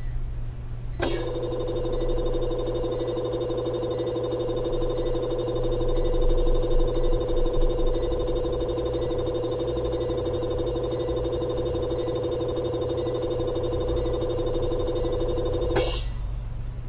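A laser tool hums with a steady electric buzz.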